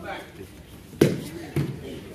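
A body thumps onto a padded mat.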